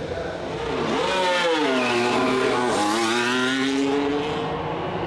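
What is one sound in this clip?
A race car engine roars loudly as the car speeds past.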